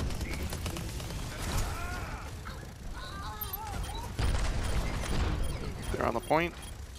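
Guns fire in rapid bursts with heavy thuds.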